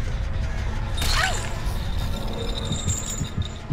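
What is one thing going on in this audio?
A sharp magical crackle bursts out and rings briefly.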